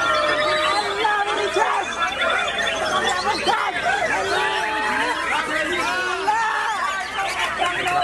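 A caged songbird sings a rich, varied warbling song.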